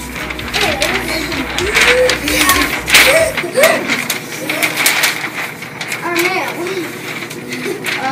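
A large sheet of paper rustles and flaps as it is unfolded.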